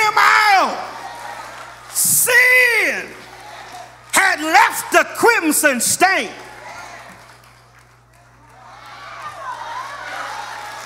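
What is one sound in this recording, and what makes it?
A man preaches forcefully through a microphone, his voice rising to shouts.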